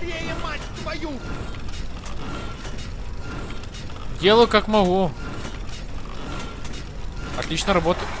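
Metal gears click into place.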